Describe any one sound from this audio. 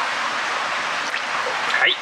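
Water sloshes gently.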